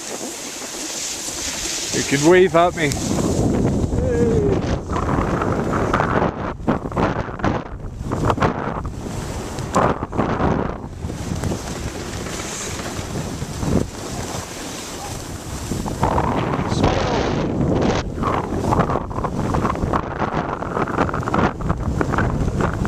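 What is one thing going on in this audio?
Wind rushes and buffets outdoors.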